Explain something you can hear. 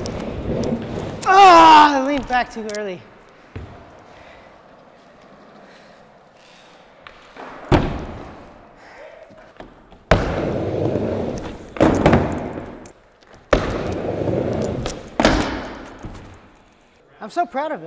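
Skateboard wheels roll and rumble over a wooden ramp.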